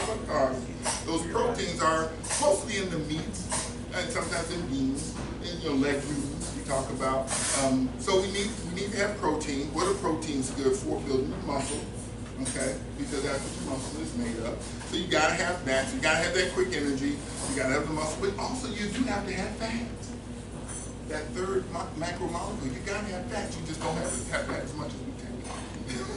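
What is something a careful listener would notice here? A man speaks with animation in a room with some echo.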